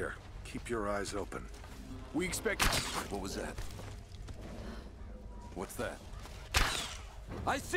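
A bow string snaps as an arrow is loosed.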